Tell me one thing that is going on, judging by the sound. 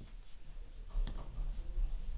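A chess move sounds with a short, sharp click.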